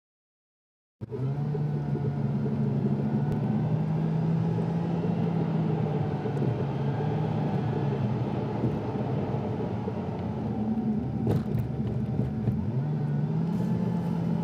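Tyres roll on a smooth road.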